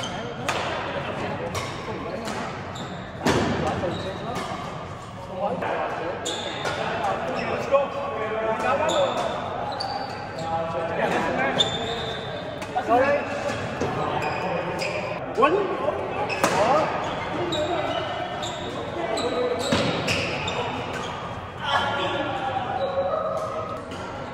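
Shuttlecocks are struck sharply with rackets, echoing in a large hall.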